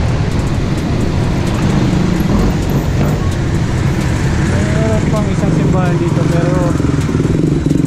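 Car and motorbike engines hum in nearby street traffic.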